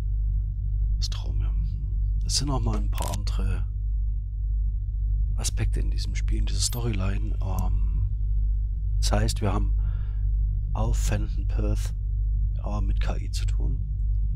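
A middle-aged man speaks calmly and quietly into a close microphone.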